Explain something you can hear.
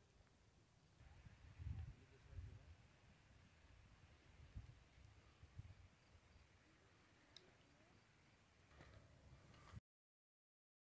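Wind rumbles in low gusts outdoors.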